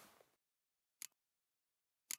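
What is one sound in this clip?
A game menu clicks.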